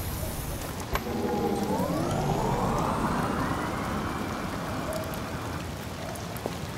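An electric vehicle hums and whirs as it pulls away.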